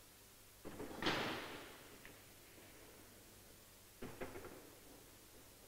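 Billiard balls click against each other and roll in an echoing hall.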